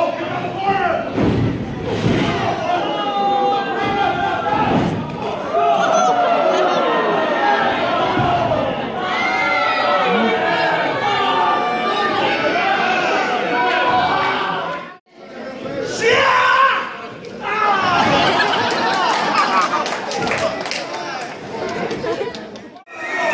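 A crowd in a large echoing hall cheers and shouts.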